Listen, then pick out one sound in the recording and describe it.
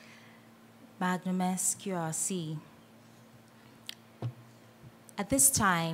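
A woman speaks into a microphone, heard through loudspeakers in a large room.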